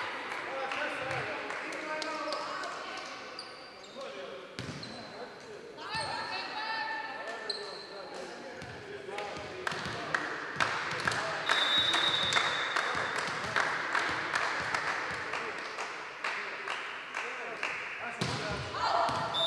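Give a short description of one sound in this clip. Players' shoes squeak on the hall floor.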